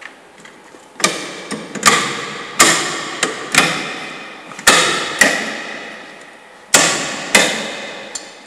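Metal parts of a rack clank and rattle sharply under a hand, with a short ringing echo.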